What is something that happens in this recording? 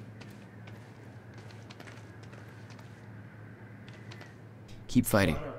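Footsteps tap softly on a hard floor.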